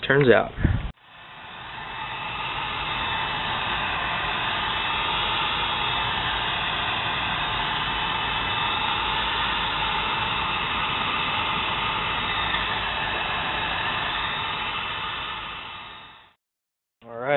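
A heat gun blows with a steady roaring hiss.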